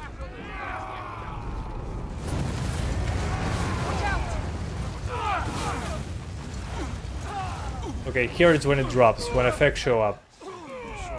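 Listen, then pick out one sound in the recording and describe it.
Flames roar and rumble.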